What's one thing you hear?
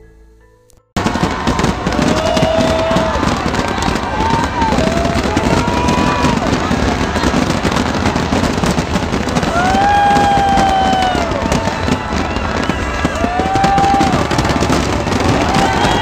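Fireworks whistle, bang and crackle in the open air.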